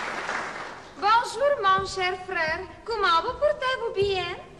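A woman sings with a wavering voice.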